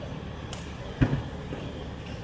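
A tennis ball bounces on a hard court.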